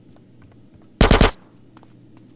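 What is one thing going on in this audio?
A submachine gun fires a short, rapid burst.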